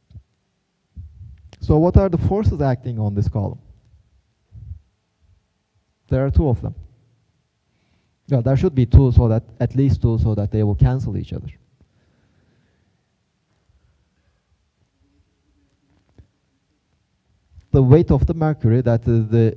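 A man lectures through a microphone, speaking calmly in bursts with pauses.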